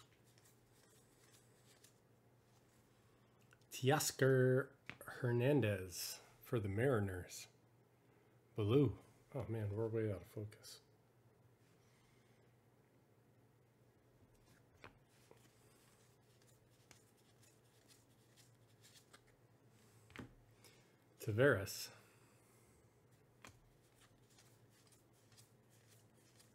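Trading cards rustle and slide against each other as they are shuffled by hand.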